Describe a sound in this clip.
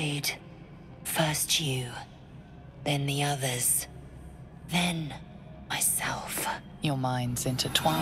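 A woman speaks in a low, tense voice up close.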